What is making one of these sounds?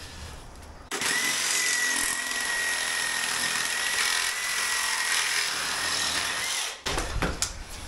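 A reciprocating saw cuts loudly through a metal window frame.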